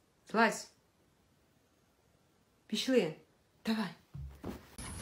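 A dog howls and yowls in short bursts close by.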